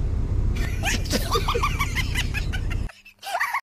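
A man laughs close by.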